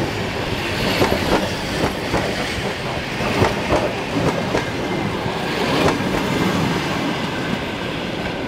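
A passenger train rumbles past close by.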